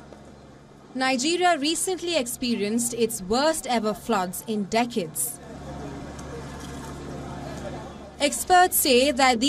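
A young woman speaks steadily into a microphone, like a news reader.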